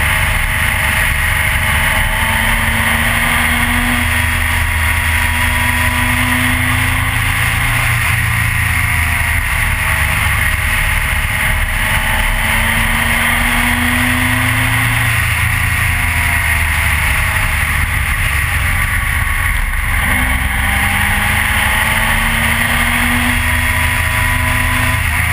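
A motorcycle engine roars up close, rising and falling in pitch as it shifts gears.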